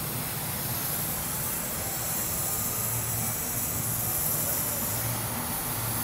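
A gas torch flame hisses steadily.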